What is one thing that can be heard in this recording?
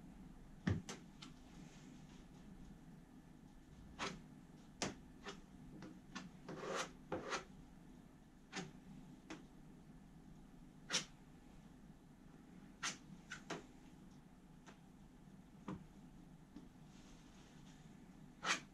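A plastic spreader scrapes and taps against a hard shell.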